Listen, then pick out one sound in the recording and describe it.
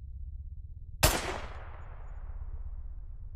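A gunshot fires once, loud and sharp, and echoes away.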